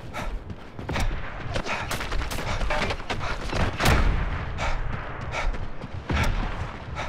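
Rifle shots crack sharply, several times.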